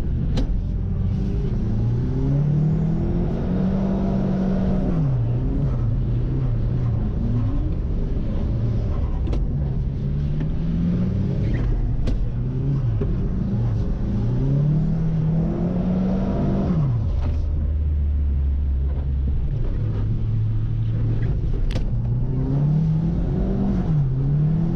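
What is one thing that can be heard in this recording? A car engine hums and rises in pitch, dropping back with each gear change.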